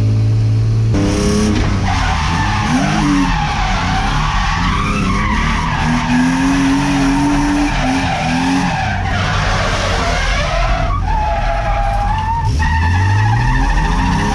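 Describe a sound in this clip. Tyres screech as the car slides sideways.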